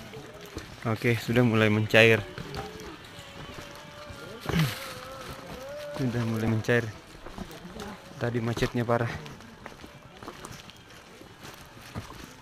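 Footsteps crunch on a rocky dirt path.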